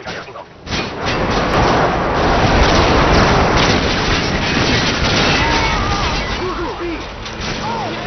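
An explosion roars and crackles.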